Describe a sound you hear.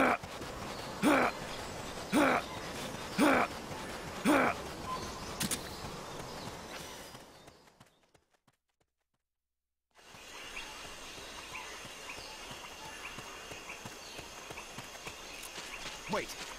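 A steady jungle ambience of rustling leaves hums in the background.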